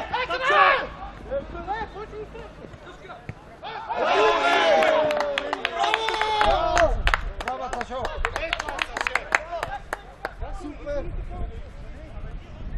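Men shout and call out loudly outdoors.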